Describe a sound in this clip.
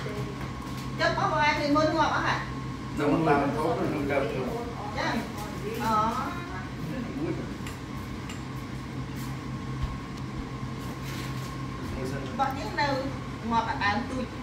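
Adults talk and laugh together nearby.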